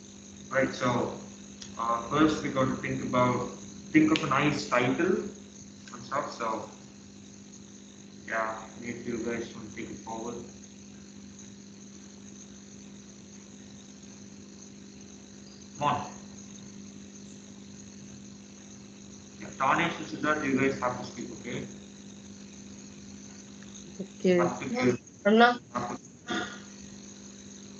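Young men talk casually over an online call.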